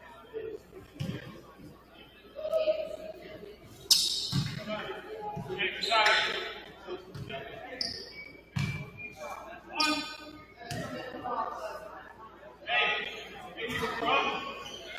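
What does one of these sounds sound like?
A basketball bounces on a hard court in a large echoing gym.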